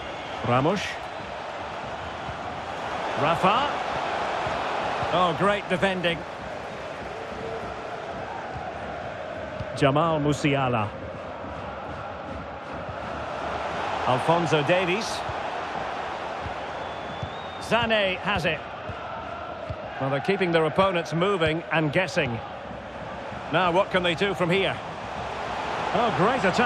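A large crowd cheers and murmurs steadily in a big stadium.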